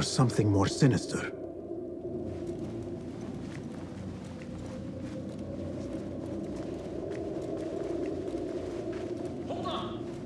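Footsteps thud softly on a wooden floor and stairs.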